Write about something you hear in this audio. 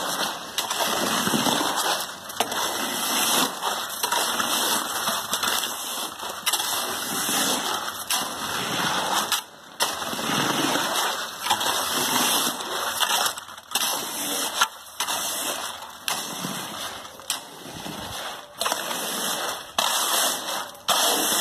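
A wooden pole pushes and slaps through wet concrete.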